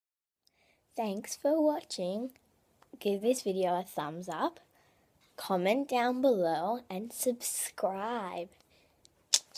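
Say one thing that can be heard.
A young girl talks excitedly up close.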